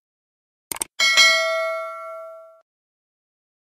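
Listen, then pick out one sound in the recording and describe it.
A small bell rings brightly and fades.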